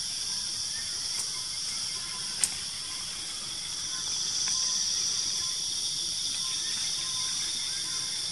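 An animal rustles through dry leaves and brush.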